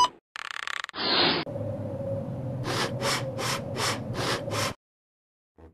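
A balloon is blown up in quick puffs.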